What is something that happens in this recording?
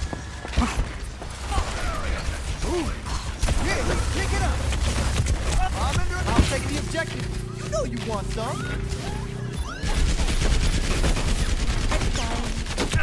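A video game weapon fires bursts of projectiles.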